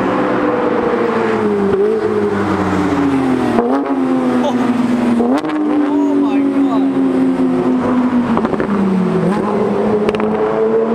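A sports car engine roars loudly as the car speeds past, its pitch dropping and jumping with gear shifts.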